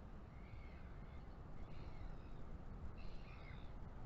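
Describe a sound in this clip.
A large seabird flaps its wings.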